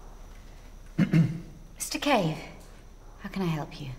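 A young woman speaks with surprise, close by.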